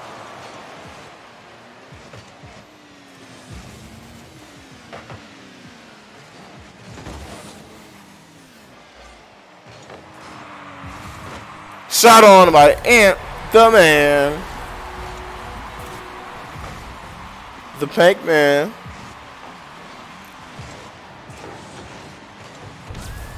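Car engines hum and boost with a rushing hiss.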